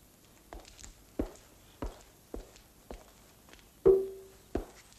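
A vase knocks down onto a wooden table.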